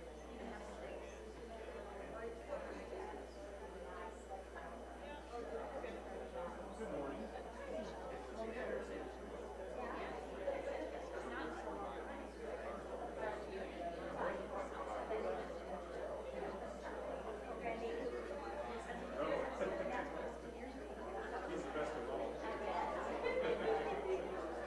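Many adults chat quietly among themselves in a room that echoes.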